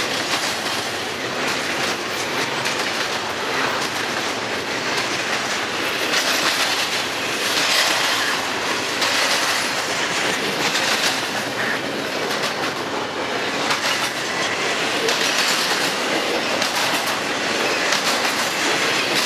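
Steel wheels clatter and squeal on the rails.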